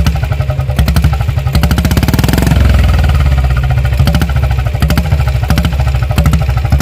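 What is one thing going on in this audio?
A motorcycle engine idles with a loud, thumping exhaust close by.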